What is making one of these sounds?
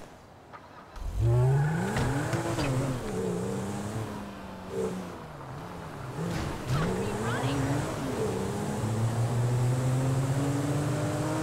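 A car engine revs as the car pulls away and accelerates.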